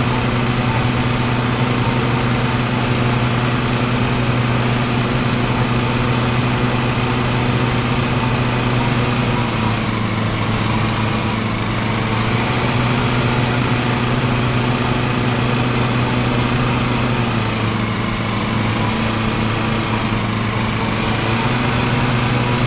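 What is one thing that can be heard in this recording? Mower blades cut through grass with a whirring hiss.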